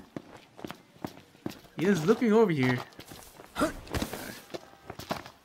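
Footsteps run at a steady pace on wet ground.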